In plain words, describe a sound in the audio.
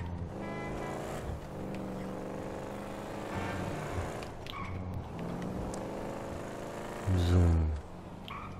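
A car engine hums steadily and revs as the car drives.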